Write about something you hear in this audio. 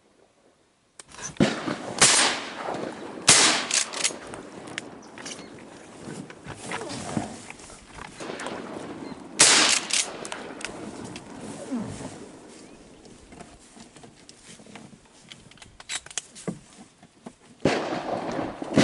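Wind gusts loudly and rustles through reeds outdoors.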